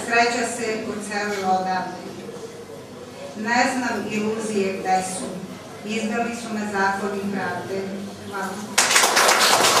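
A middle-aged woman reads out calmly through a microphone.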